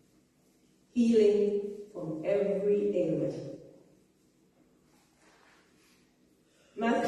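A woman speaks calmly into a microphone in a slightly echoing room.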